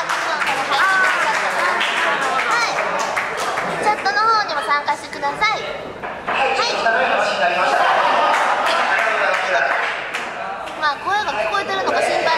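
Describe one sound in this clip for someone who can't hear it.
Young women talk and laugh excitedly close to a microphone.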